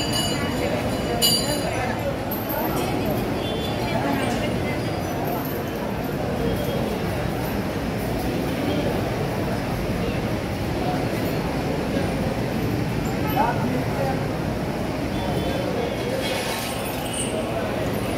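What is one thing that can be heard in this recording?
A crowd of men and women chatters and murmurs all around, outdoors.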